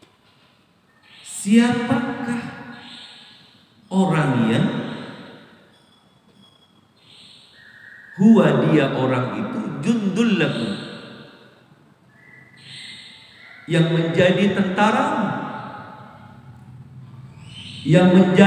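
A man preaches with emotion through a microphone, his voice echoing in a large hall.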